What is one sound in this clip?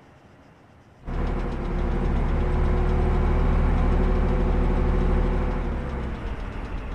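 Tank tracks clank and squeak close by.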